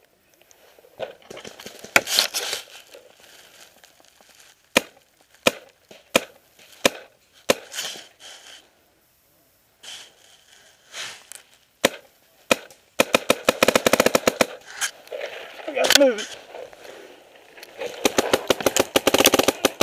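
A paintball marker fires in quick bursts of sharp pops.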